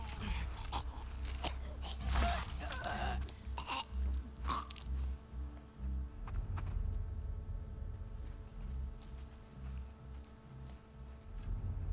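Tall grass rustles underfoot.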